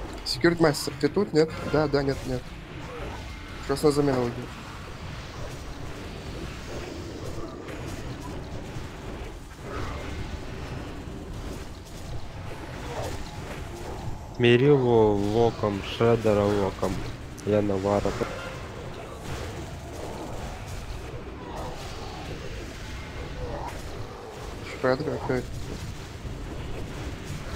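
Magic spells crackle and weapons clash in a noisy battle.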